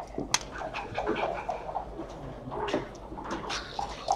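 A plastic checker clicks onto a game board.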